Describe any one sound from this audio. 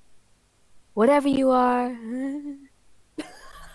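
A young woman cries out loudly in fright.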